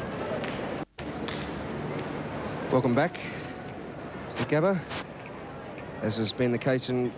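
A large crowd murmurs steadily in the distance.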